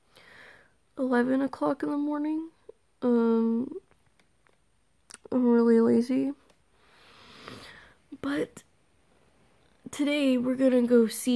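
A young woman speaks softly and drowsily close by.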